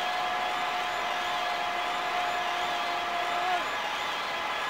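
A steady electronic tone from an arcade game holds, then dips in pitch and stops.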